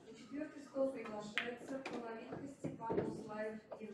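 Pool balls clack against each other.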